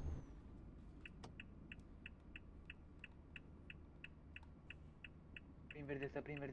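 A turn signal ticks rapidly.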